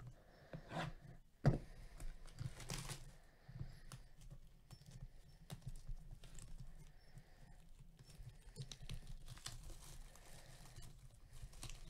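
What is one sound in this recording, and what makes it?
Plastic wrap crinkles and tears as a box is cut open.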